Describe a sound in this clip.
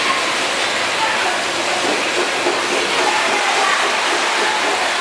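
A conveyor belt hums and rattles steadily.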